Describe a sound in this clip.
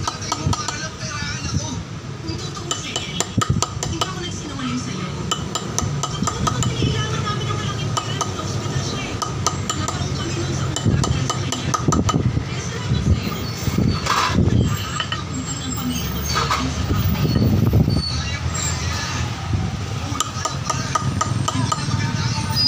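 A hand chisel scrapes and taps on granite.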